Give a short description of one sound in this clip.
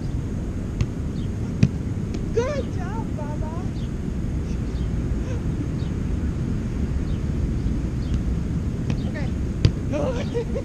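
A volleyball thumps off a player's forearms.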